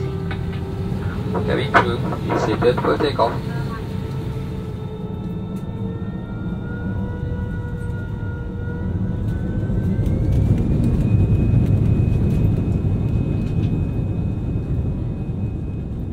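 Jet engines roar with a deep steady rumble that swells louder.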